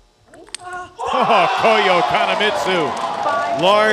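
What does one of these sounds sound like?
A young man shouts in triumph.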